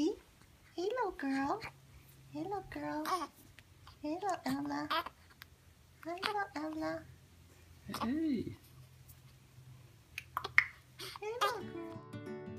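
A newborn baby cries in short, wailing bursts close by.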